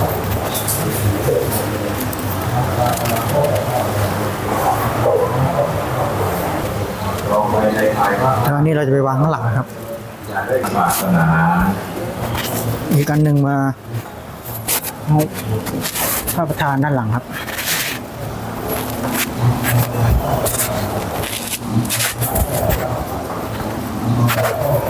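A man murmurs a prayer close by.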